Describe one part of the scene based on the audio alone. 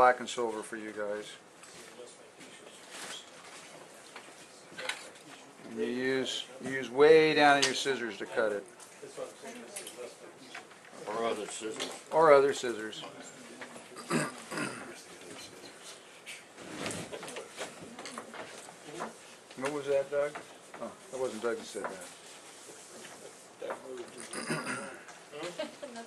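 An older man talks calmly and explains nearby.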